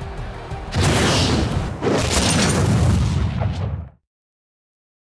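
A loud explosion booms and roars, then cuts off.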